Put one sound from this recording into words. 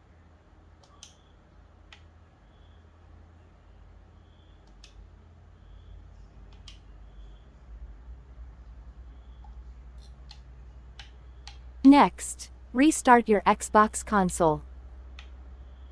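Soft electronic menu clicks sound from a nearby speaker now and then.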